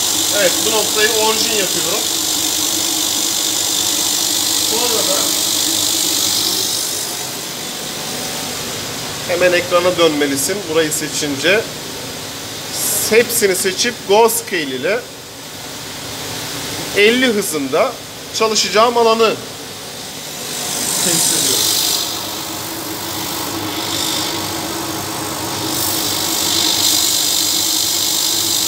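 A laser cutting machine whirs and hisses steadily with a rushing exhaust fan.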